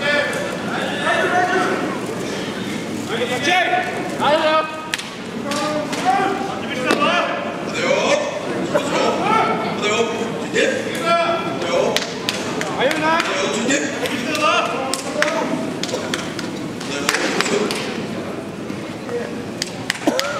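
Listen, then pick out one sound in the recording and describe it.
A crowd of men and women chatters throughout a large echoing hall.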